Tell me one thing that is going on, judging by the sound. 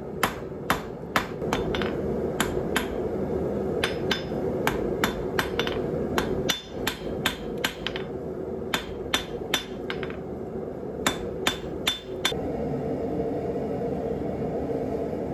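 A gas forge roars steadily.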